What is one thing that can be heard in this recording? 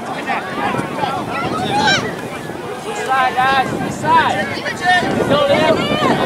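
Adult spectators shout and cheer loudly outdoors.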